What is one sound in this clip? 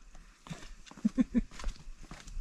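A man laughs briefly.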